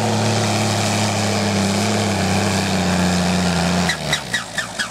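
A tractor engine roars loudly under heavy strain.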